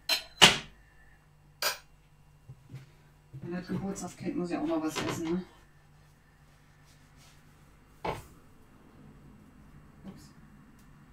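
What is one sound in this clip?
Utensils clatter and knock.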